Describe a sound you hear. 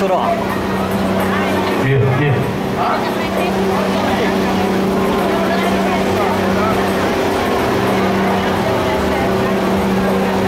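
A fire engine's motor hums steadily nearby.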